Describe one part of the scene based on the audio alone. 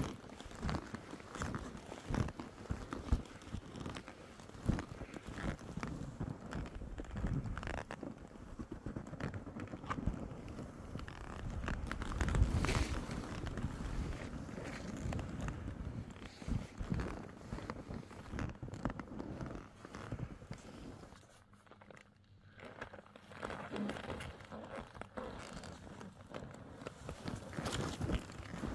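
Skis swish and crunch through deep snow close by.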